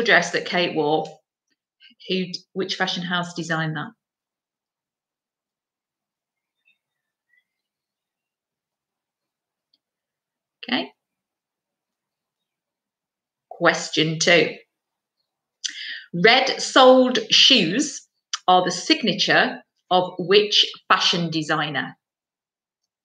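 A woman speaks calmly into a nearby microphone, with pauses.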